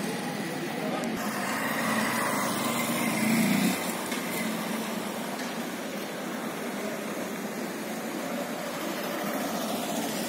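Motorcycle engines hum as they pass by.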